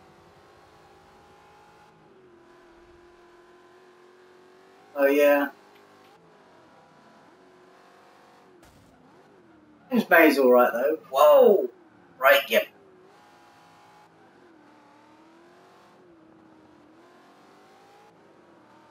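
A racing car engine hums and revs as gears change.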